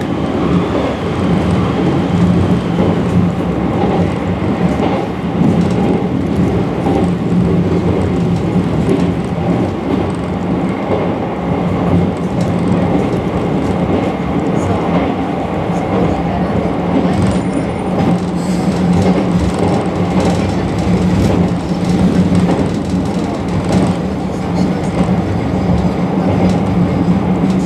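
Train wheels clatter and rattle on the rails.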